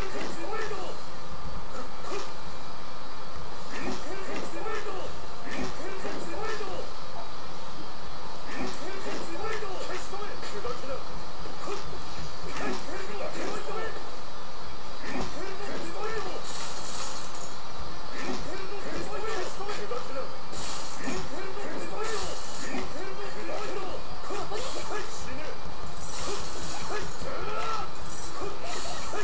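Energetic game music plays throughout.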